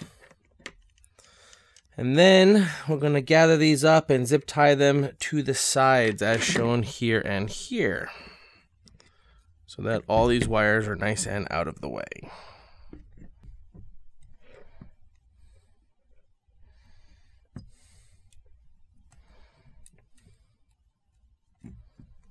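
Small metal parts click and clatter as they are handled.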